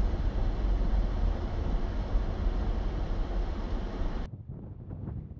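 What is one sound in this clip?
A car hums steadily from inside as it drives.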